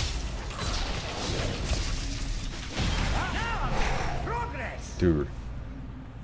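Game spell and combat effects whoosh and crackle.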